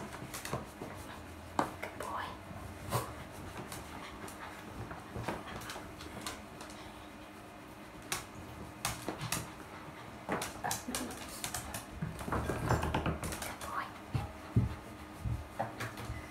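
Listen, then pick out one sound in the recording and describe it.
A towel rubs briskly over a wet dog's fur.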